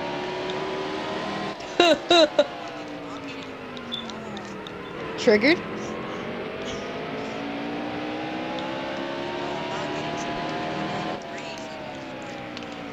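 A race car engine roars steadily, its pitch rising and falling as it shifts gears.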